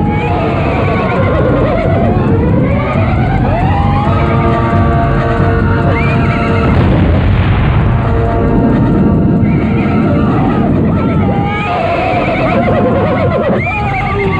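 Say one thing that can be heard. Horses gallop over sand.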